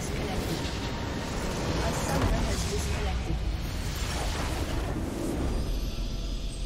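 A huge explosion booms and rumbles, then fades.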